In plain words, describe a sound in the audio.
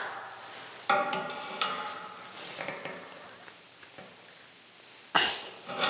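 Metal pliers clink against a metal fitting.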